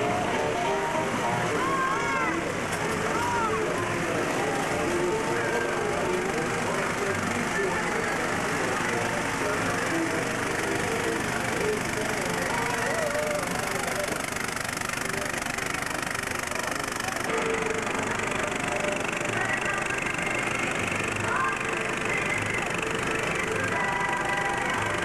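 Music plays over a loudspeaker.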